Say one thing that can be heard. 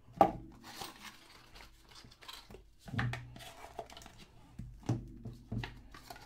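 A cardboard box lid scrapes open.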